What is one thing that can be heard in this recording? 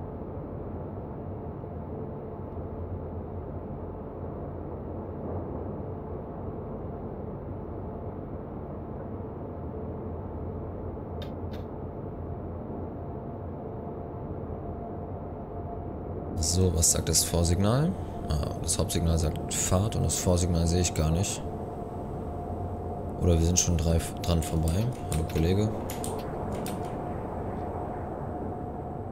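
Train wheels rumble along the rails.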